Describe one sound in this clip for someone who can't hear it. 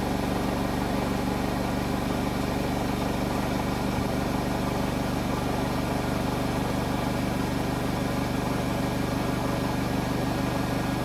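A washing machine runs with a steady, droning hum.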